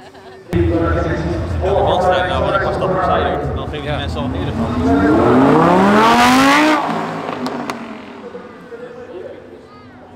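A sports car engine rumbles loudly and then revs hard, rising in pitch as it speeds away.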